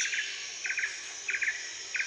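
A drummer taps lightly on cymbals.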